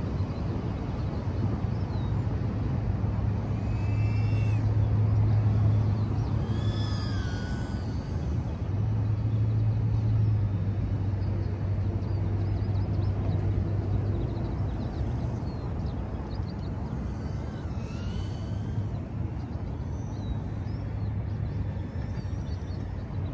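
A small drone's motors whir and change pitch as it flies.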